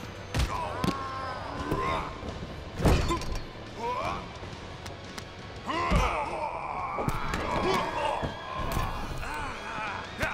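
Punches land with sharp smacks.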